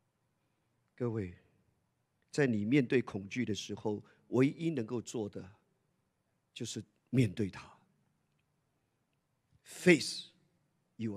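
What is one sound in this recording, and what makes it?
A man speaks through a microphone, with pauses.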